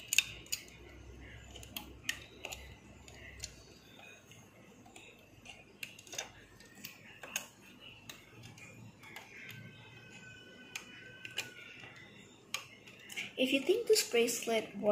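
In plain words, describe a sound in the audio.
A plastic hook clicks and taps against plastic pegs.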